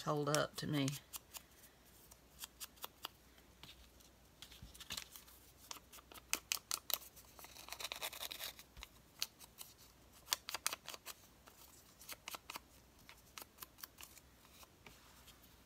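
A foam blending tool taps and dabs on paper.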